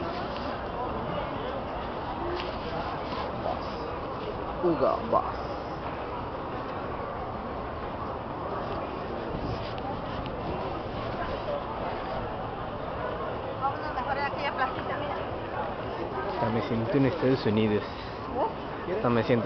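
A crowd of people chatters steadily outdoors.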